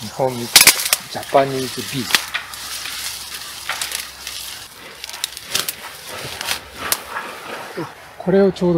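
A man talks nearby in short phrases.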